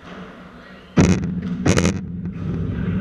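Paddle rackets strike a ball with sharp pops in a large echoing hall.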